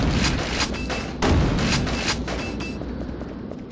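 A gun fires in rapid bursts.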